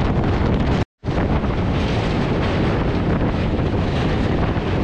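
A train rattles across a steel bridge.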